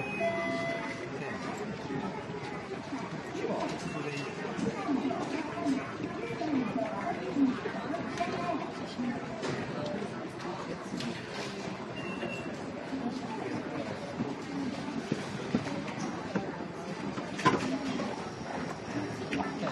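A crowd of people chatters in the background of a large echoing hall.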